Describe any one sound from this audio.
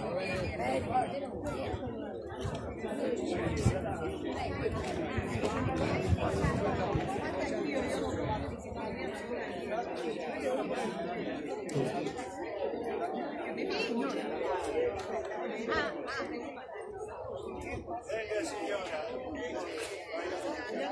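A group of adults chat and murmur nearby outdoors.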